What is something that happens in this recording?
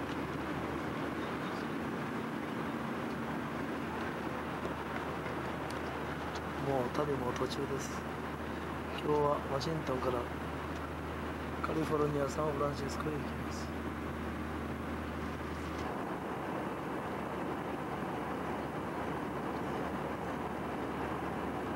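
Aircraft engines roar steadily inside the cabin.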